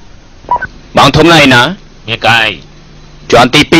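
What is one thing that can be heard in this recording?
A man speaks into a handheld radio.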